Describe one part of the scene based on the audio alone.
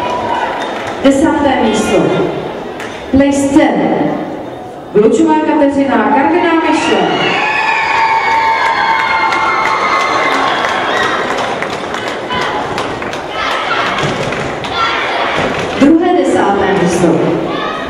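Young girls cheer and shriek loudly in a large echoing hall.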